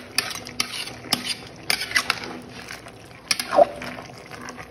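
A metal spoon scrapes and clanks against a metal pot.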